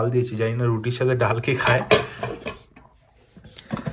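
A metal lid clinks as it is lifted off a container.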